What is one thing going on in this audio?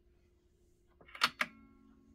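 A hand knocks against a record player, with sharp ringing clicks.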